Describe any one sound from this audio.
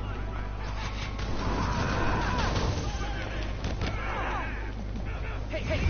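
Punches and kicks land with heavy thuds during a brawl.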